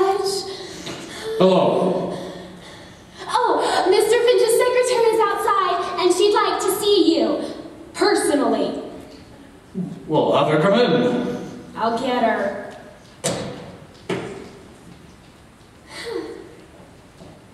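A woman sings loudly in a large echoing hall.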